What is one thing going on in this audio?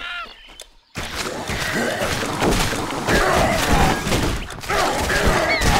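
Weapons clash in a fight.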